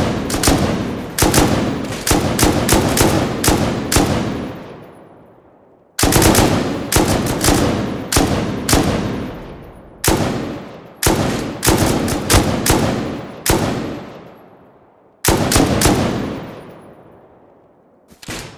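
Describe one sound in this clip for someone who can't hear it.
Rifle shots fire in quick bursts, each ringing out with a long echo.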